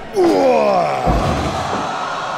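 A body slams hard onto a ring mat.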